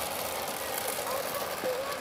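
A model train runs along a track.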